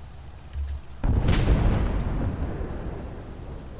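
A distant explosion booms and rumbles away.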